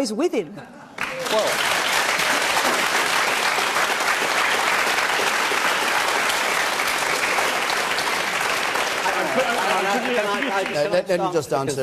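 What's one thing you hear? A large audience applauds and cheers loudly.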